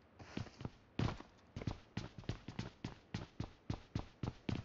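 Footsteps tap quickly and evenly on a hard floor.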